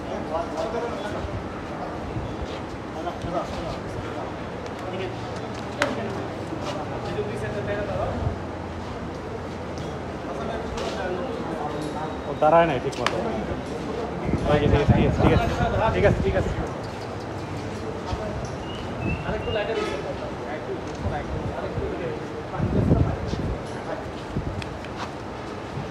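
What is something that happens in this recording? A bull's hooves shuffle and scrape on a wet floor.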